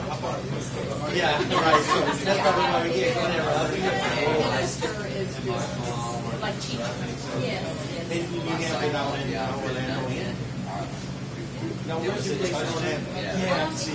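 A man talks calmly into a microphone.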